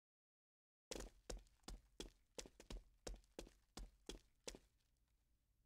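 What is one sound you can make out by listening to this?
Footsteps tap on a wooden floor indoors.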